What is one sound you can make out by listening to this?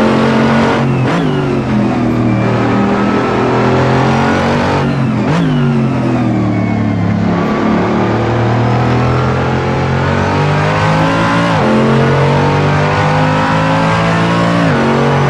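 A racing car's gearbox shifts gears with sharp cracks.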